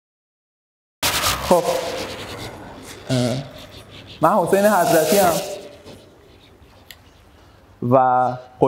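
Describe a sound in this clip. A man speaks into a microphone, echoing through a large hall.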